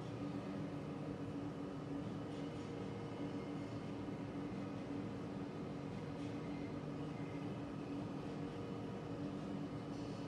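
Steam hisses steadily from vents.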